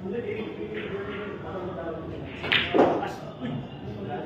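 Billiard balls click together.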